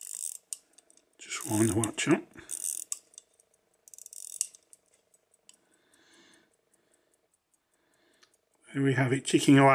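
A pocket watch ticks quickly and softly close by.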